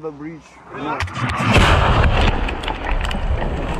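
An explosion bursts nearby with a loud roar.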